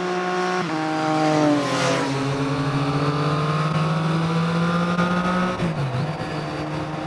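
A motorcycle engine revs loudly and shifts through gears.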